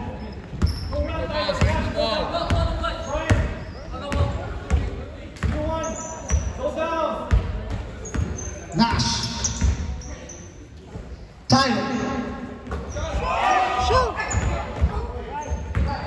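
Young spectators shout and cheer.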